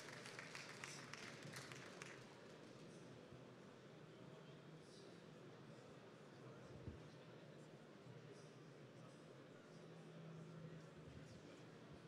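A woman speaks calmly into a microphone, heard through loudspeakers in a large hall.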